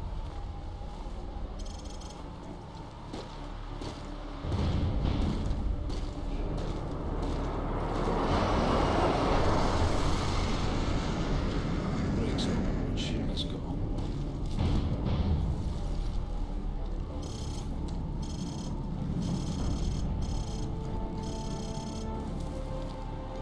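Strong wind howls and gusts outdoors.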